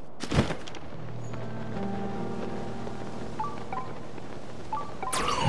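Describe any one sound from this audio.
Wind rushes past a game character gliding.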